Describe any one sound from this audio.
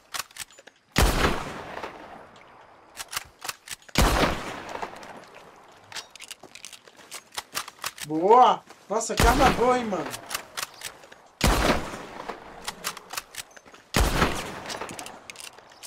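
Rifle shots ring out loudly, each followed by a rolling echo.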